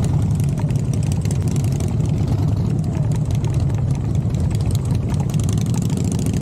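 A motorcycle engine rumbles close by.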